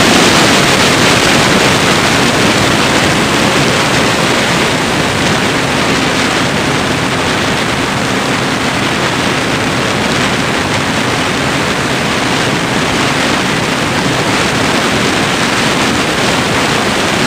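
An aircraft engine drones loudly and steadily, close by.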